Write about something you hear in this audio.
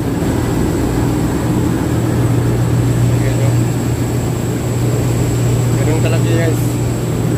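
A tugboat's diesel engine drones steadily.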